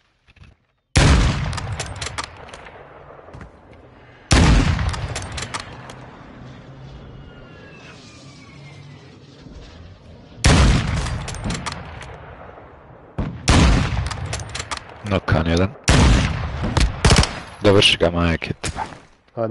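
Loud sniper rifle shots crack and echo away.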